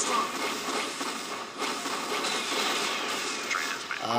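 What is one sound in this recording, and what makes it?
A game explosion booms.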